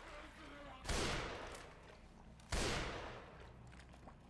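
A rifle fires two loud shots that echo down a hollow tunnel.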